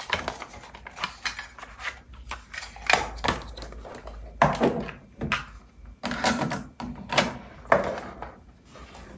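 A cassette case rustles and clicks in a hand.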